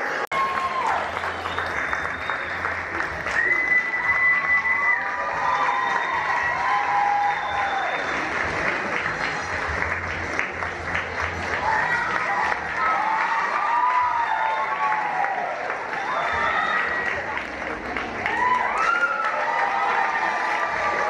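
A group of children sing together on a stage, heard from the back of an echoing hall.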